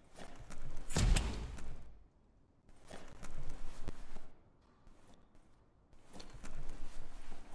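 Footsteps scuff on wet ground in short bursts.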